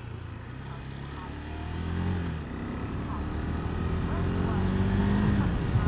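A motorcycle engine hums and rises in pitch as the bike speeds up.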